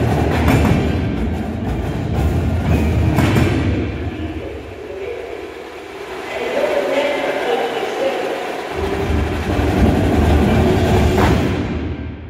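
Cymbals crash with a ringing shimmer.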